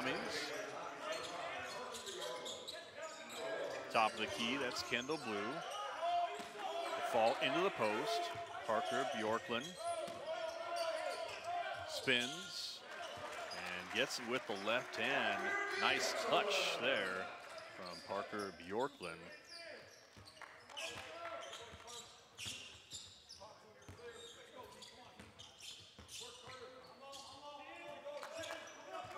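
Young men shout on the court in a large echoing hall.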